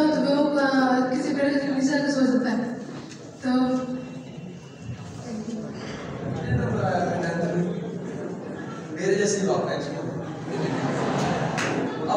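An audience murmurs quietly.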